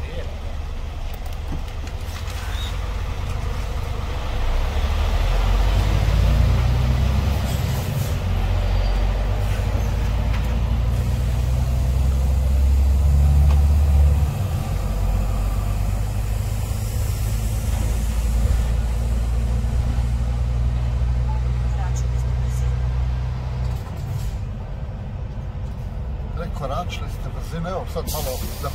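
A diesel truck engine rumbles from inside the cab as the truck pulls away and drives.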